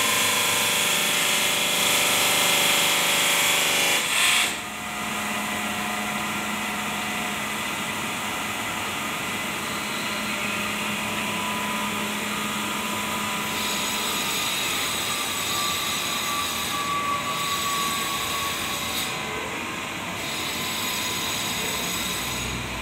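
A stone-cutting machine grinds and whines loudly in a large echoing shed.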